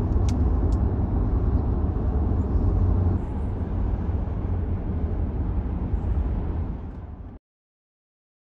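A car drives steadily along a road, with a low rumble of engine and tyres.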